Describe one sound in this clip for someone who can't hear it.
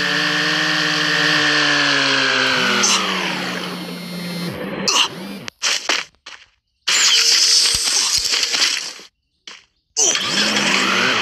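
A car engine roars at speed.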